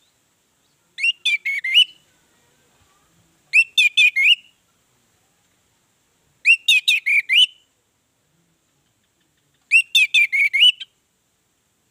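An orange-headed thrush sings short phrases of whistled notes.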